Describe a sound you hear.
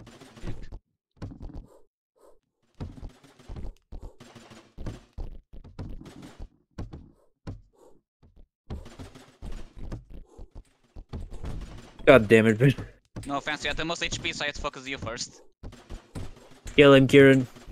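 Small guns fire in quick bursts.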